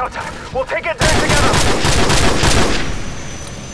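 A helicopter explodes with a heavy blast.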